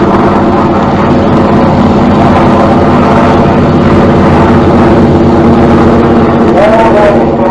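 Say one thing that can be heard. An aircraft engine drones steadily overhead.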